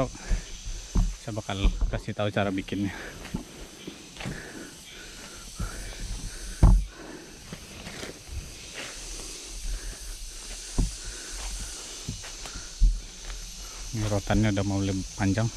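Footsteps crunch through dry leaves on the ground.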